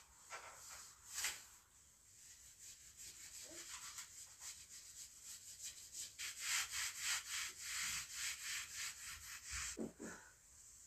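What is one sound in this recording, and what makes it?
A cloth rubs briskly back and forth against glass.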